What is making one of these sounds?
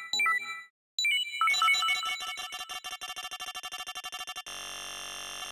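A rapid series of electronic blips ticks.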